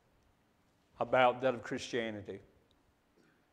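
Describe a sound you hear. A man speaks calmly and slowly in an echoing hall.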